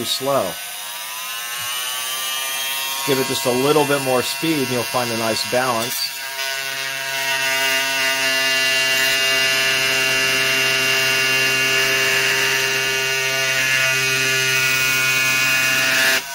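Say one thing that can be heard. A power tool hums steadily close by.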